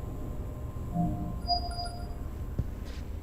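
An electronic door panel beeps a few short tones.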